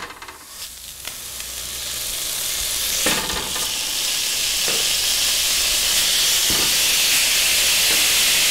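Raw meat sizzles loudly on a hot grill.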